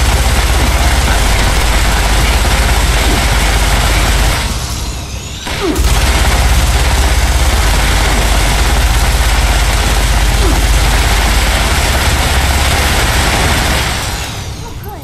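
A heavy gun fires in a loud, rapid, roaring stream.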